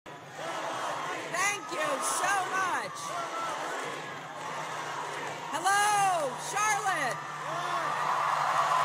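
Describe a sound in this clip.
A large crowd cheers and applauds loudly in a big echoing arena.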